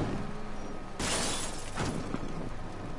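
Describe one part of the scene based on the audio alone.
A heavy crash of metal rings out.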